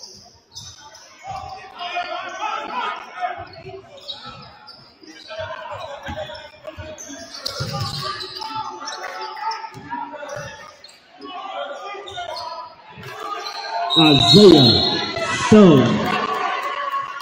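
A crowd chatters and cheers.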